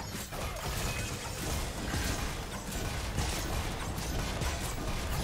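Video game spells whoosh and crackle during a fight.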